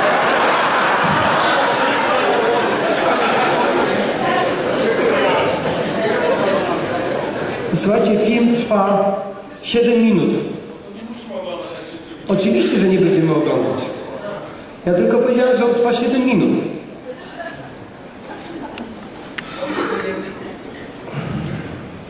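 A man speaks with animation through a microphone in a large echoing hall.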